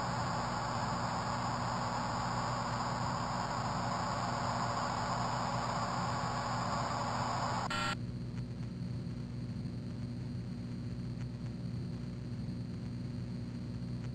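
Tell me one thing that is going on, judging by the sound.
A flying saucer hums steadily.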